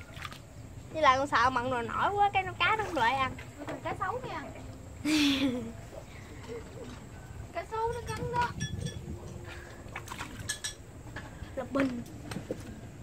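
A young girl talks cheerfully close by.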